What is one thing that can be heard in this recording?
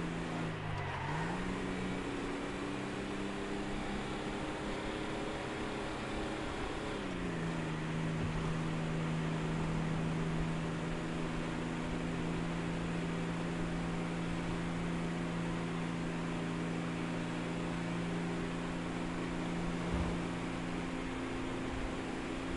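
A car engine hums steadily, with its pitch shifting at gear changes.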